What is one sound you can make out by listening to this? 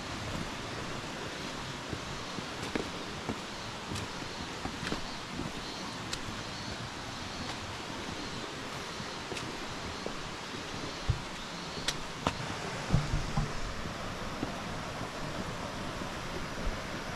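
Footsteps crunch on a rocky path.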